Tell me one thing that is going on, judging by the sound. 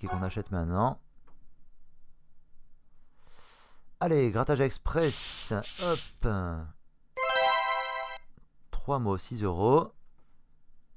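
Electronic game sound effects chime and sweep up and down in short bursts.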